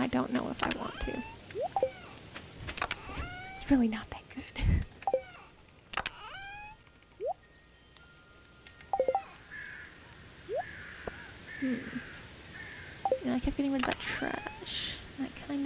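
Short chirpy menu clicks and blips sound again and again.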